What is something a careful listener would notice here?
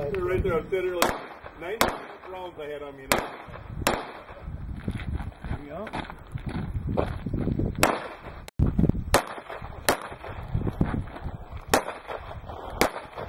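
Pistol shots crack sharply outdoors, one at a time.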